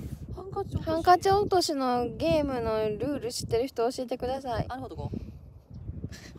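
A young woman talks close to the microphone with animation.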